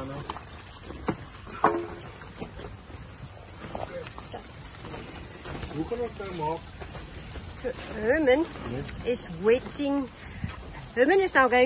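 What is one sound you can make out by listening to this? Water gushes from a hose onto soil.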